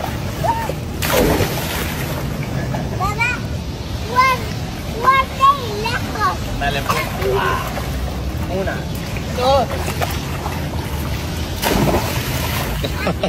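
Water splashes as a child drops into a pool.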